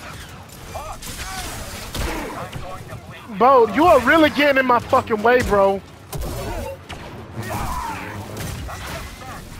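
Blades clash with sharp electric crackles.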